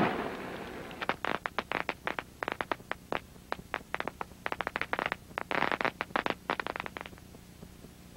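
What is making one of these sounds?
Fireworks crackle and pop in quick bursts.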